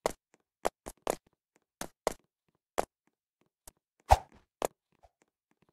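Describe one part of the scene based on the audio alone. Footsteps knock on ladder rungs in quick, uneven steps.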